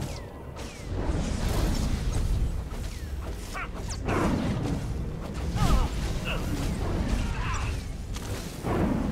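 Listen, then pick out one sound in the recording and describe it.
An energy shield crackles and hums.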